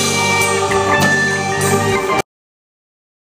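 An electric guitar plays along.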